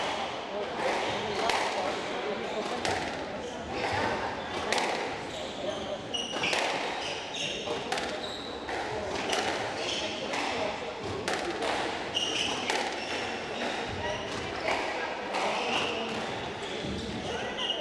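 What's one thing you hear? A squash ball smacks sharply off rackets and walls in a rapid, echoing rally.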